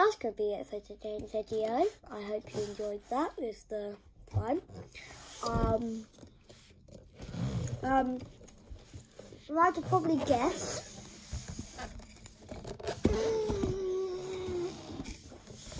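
A young boy talks close to the microphone, with animation, his voice rising and falling in pitch.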